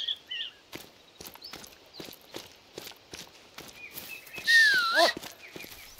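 Footsteps tread steadily over stone paving.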